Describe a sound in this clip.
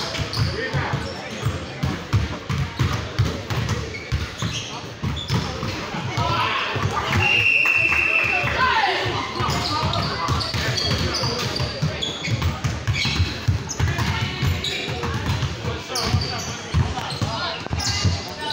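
A basketball bounces on a hard floor with sharp thuds.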